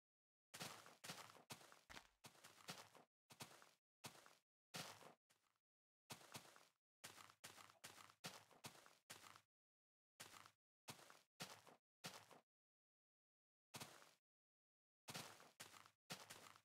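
Footsteps crunch steadily on grass, stopping and starting.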